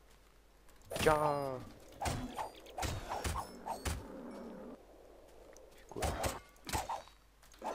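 A sword strikes an animal with quick, sharp thuds.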